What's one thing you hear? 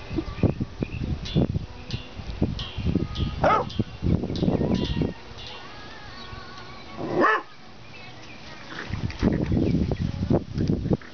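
Small dogs scamper and rustle through grass.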